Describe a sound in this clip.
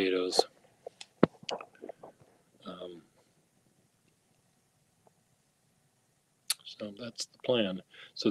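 An elderly man speaks close to a phone microphone, in short bursts with pauses.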